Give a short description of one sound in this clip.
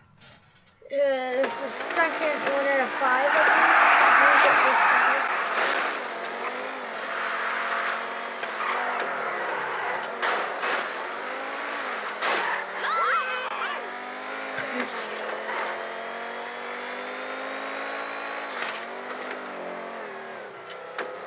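A powerful car engine roars and revs up and down at high speed.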